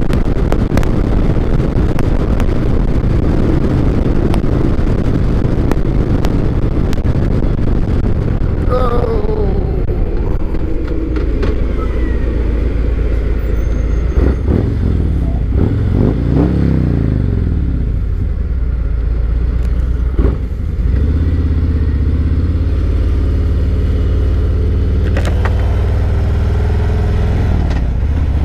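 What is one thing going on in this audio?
A motorcycle engine rumbles steadily as the bike rides along.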